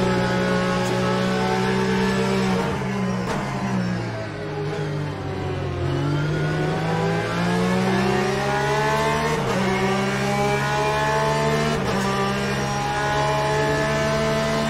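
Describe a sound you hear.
A racing car engine roars loudly, dropping in pitch while braking and rising again as it speeds up.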